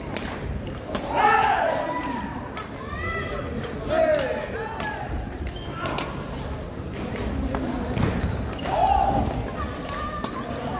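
Women players call out to each other.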